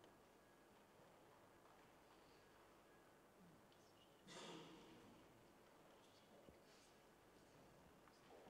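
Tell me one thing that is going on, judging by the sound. A woman speaks calmly through a microphone, heard from the back of a quiet echoing room.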